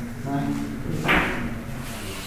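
A cue strikes a billiard ball sharply.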